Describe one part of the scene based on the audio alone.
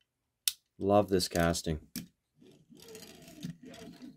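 A small plastic toy car clicks softly as it is set down on a mat.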